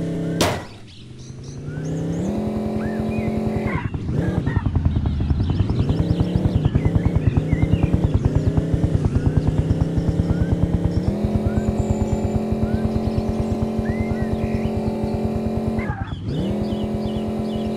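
A motorbike engine revs and hums steadily, rising and falling in pitch.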